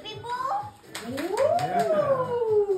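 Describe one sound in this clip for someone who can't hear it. A young girl squeals with delight close by.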